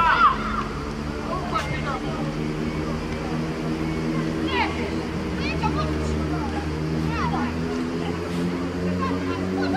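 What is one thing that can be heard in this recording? A football thuds as young players kick it on grass.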